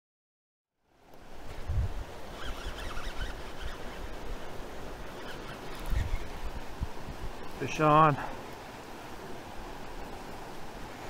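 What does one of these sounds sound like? A river rushes and gurgles over rapids close by.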